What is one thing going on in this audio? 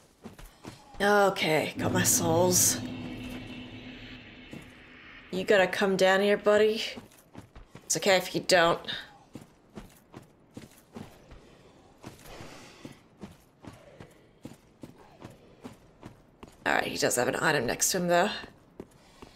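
A young woman talks with animation into a nearby microphone.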